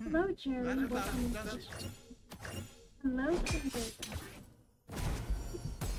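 A magical burst of sparkling sound rings out.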